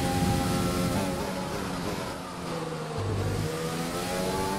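A racing car engine drops in pitch as the car slows for a corner.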